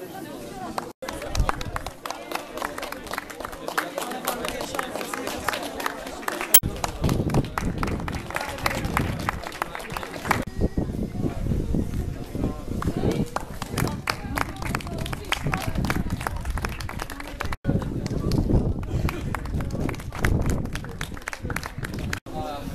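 A crowd of people claps and applauds outdoors.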